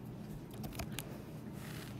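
A young boy speaks close to the microphone.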